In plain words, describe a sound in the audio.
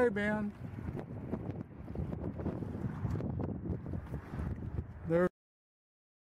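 Water ripples and laps against a moving boat.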